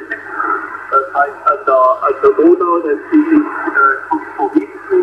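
A radio receiver hums faintly and steadily.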